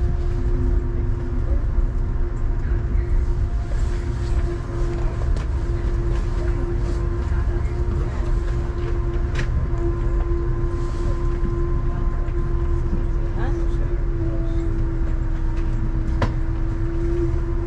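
A vehicle rumbles steadily along the road.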